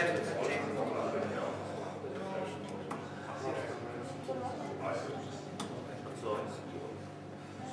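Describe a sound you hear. Darts thud sharply into a dartboard, one at a time.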